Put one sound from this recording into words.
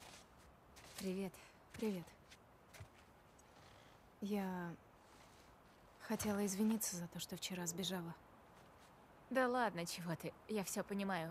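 A young woman speaks cheerfully up close.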